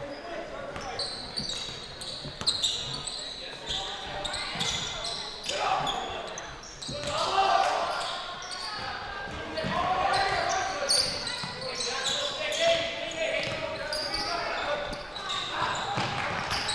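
Sneakers squeak on a hardwood court.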